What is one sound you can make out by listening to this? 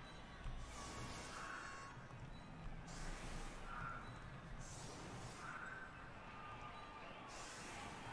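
Soft magical whooshes and chimes sound now and then.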